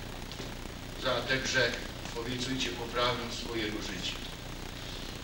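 An elderly man speaks slowly and solemnly through a microphone in an echoing hall.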